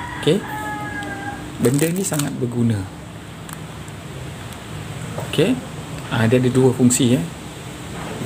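Small plastic parts rub and click together in the hands.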